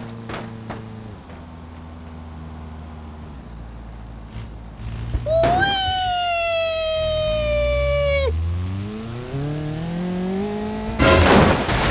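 A car engine hums and revs up as the car drives.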